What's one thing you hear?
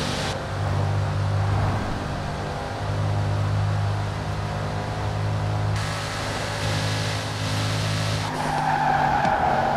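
Wind and road noise rush past a fast car.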